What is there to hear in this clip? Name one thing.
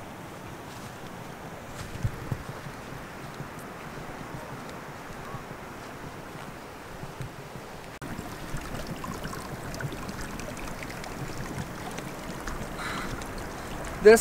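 Wind blows across an open hillside.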